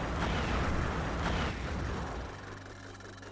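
Bubbles fizz and burst loudly.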